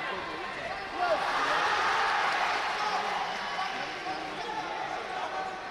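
A crowd in a large echoing hall cheers and claps.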